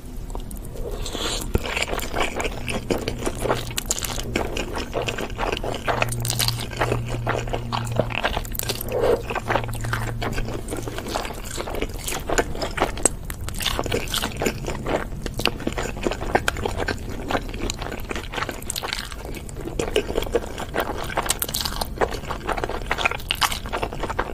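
A young woman slurps noodles loudly and close up.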